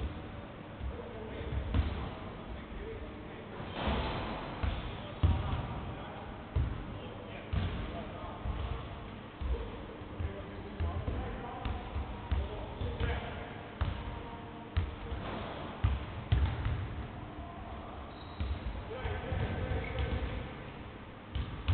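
A basketball bounces on a hardwood floor, echoing around a large hall.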